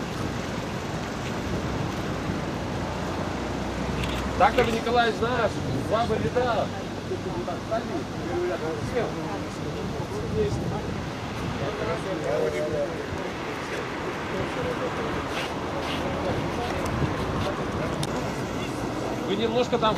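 Several men murmur quietly nearby.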